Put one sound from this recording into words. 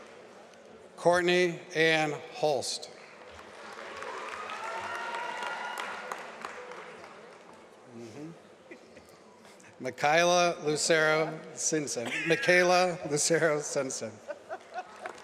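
A man reads out names through a microphone in a large echoing hall.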